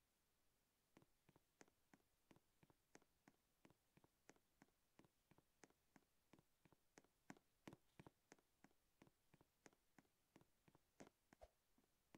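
Quick light footsteps tap on a hard surface.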